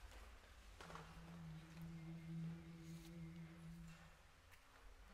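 A large male choir sings a low sustained chord in a reverberant hall.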